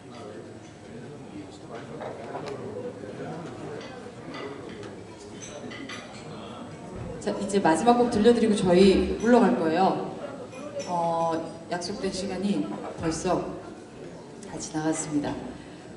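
A drummer plays softly on drums and cymbals.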